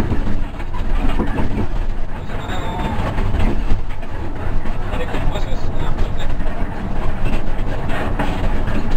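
A bus engine rumbles steadily from inside the cab.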